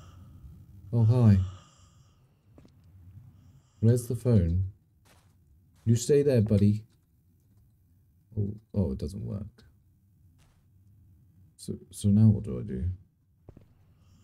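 A man talks calmly in short bursts into a close microphone.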